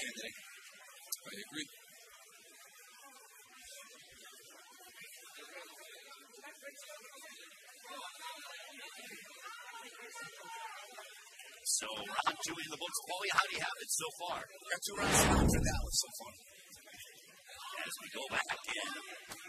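A crowd murmurs and cheers in a large echoing hall.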